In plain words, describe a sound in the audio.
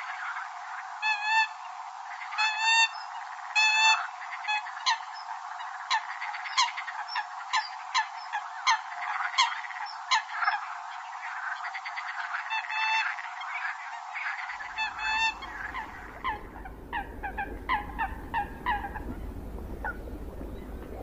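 A bird gives short, sharp calls.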